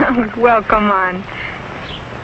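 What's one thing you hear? A young woman speaks brightly, close by.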